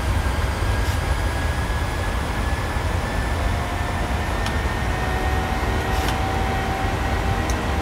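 Switches click now and then.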